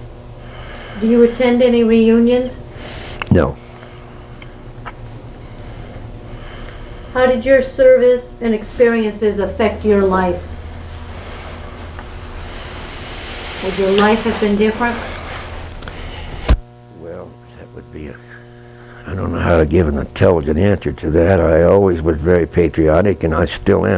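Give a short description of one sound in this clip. An elderly man speaks calmly and slowly, close to a microphone, with pauses.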